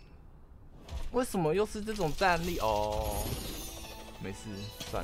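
A game chest rattles and bursts open with a bright magical shimmer.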